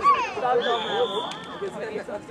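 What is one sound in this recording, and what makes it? A referee's whistle blows a short, steady blast.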